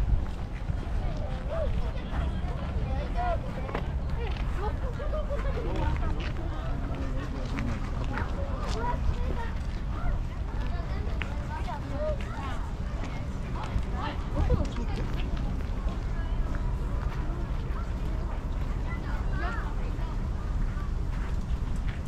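A group of people chat calmly nearby outdoors.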